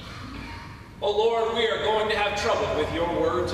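A man speaks calmly and clearly through a microphone.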